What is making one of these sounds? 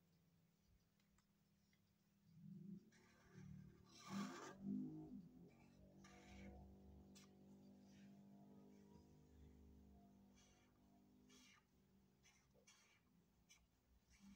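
A felt marker squeaks and scratches on paper.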